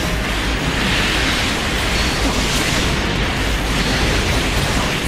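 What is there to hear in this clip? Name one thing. Robots clash with loud blasts and explosions.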